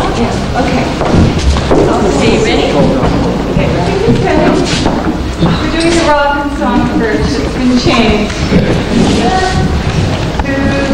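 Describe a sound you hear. Young women talk and sing softly to toddlers.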